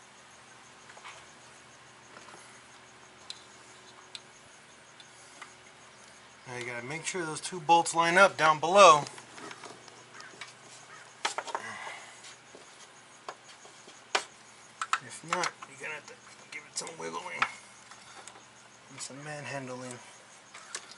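Metal tools click and tap against engine parts.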